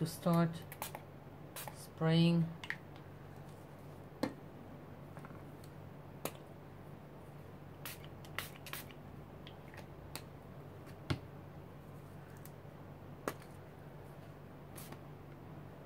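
A hand rubs and pats on paper.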